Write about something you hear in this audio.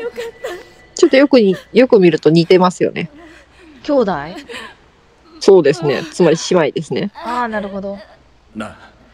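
A young woman sobs and cries out in distress.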